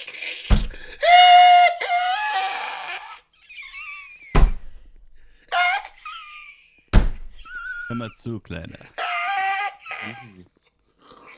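A man laughs loudly and shrieks close to a microphone.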